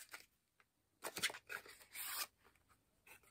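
Packaging crinkles and rustles as it is unwrapped.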